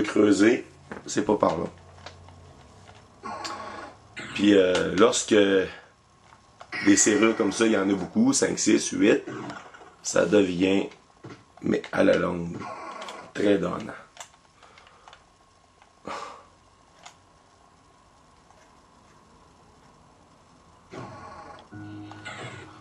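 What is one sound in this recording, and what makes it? Electronic game sound effects play through a television speaker.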